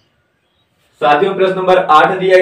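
A man speaks loudly and with animation, close to the microphone.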